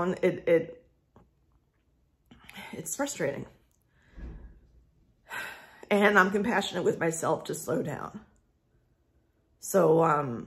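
A woman talks calmly and close by, with pauses.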